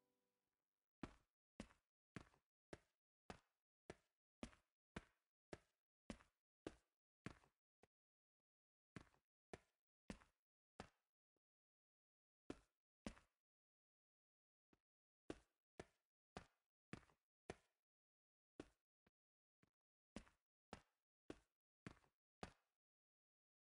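Footsteps tap at an even pace on a hard surface, with short pauses.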